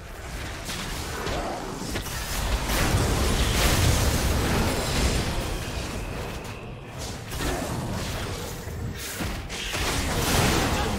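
Magic blasts and impacts crackle and boom in a fast battle.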